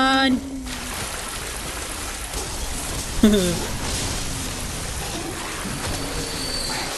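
A young woman talks quietly into a microphone.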